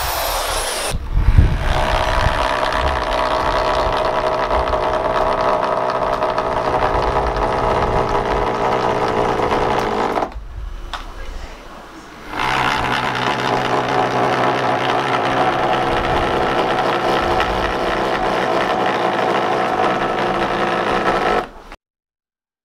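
An electric drill whirs steadily as it drives screws into wood.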